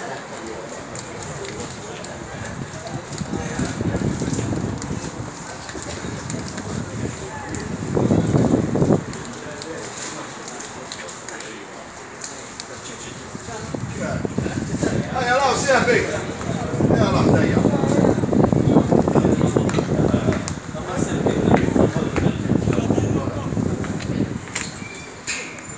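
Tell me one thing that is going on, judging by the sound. Men shout and call out across an open field at a distance.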